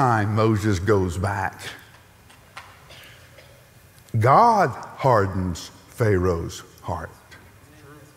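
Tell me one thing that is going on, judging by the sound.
A middle-aged man speaks emphatically through a headset microphone.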